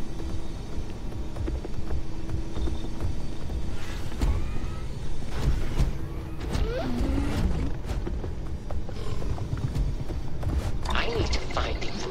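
A large creature growls and snarls nearby.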